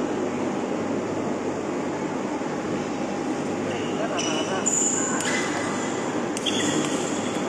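A ball smacks against a table.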